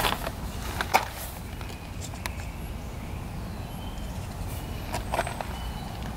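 Liquid squirts from a bottle into a paper cup.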